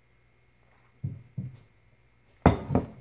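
A mug clunks down on a hard counter.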